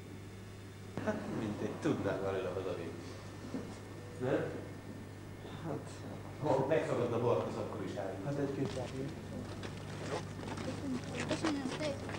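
Several men talk together close by.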